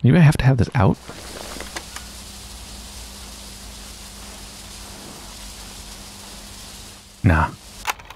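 A portable tape recorder plays a steady hiss of static.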